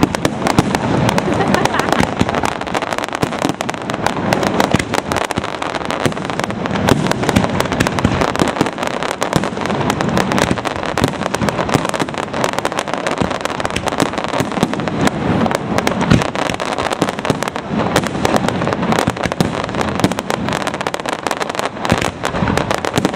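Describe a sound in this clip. Fireworks burst and crackle rapidly overhead.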